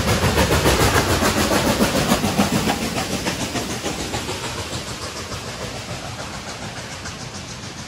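Train wheels clatter and rumble on the rails as carriages roll past.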